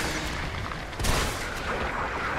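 A shotgun fires a loud blast.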